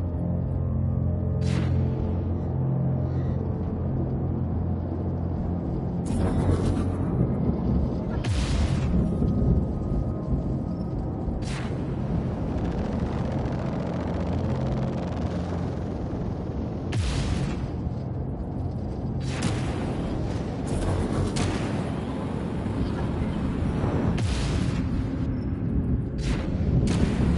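A spacecraft engine hums with a low, steady roar.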